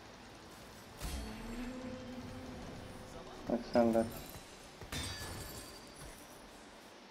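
Game spell effects whoosh and crash during a battle.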